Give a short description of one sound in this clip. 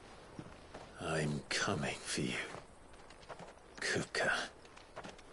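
A man speaks calmly and quietly.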